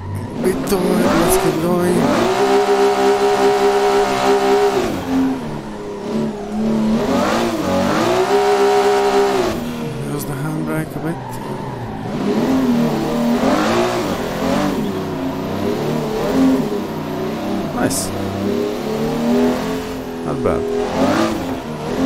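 A racing car engine roars and revs up and down as gears shift.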